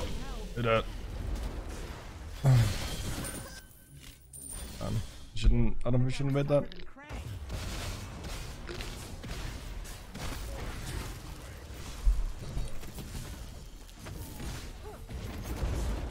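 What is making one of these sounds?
Magic blasts whoosh and crash in bursts.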